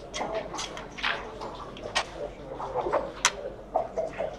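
Plastic checkers click against a game board.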